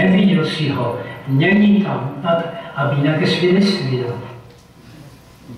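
An elderly man speaks calmly through a loudspeaker.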